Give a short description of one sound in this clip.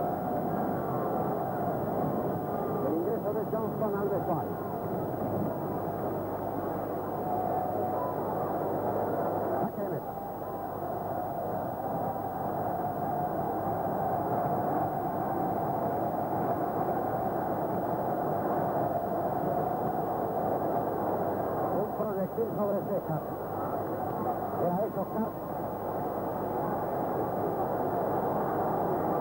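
A large stadium crowd roars and cheers steadily in a big open space.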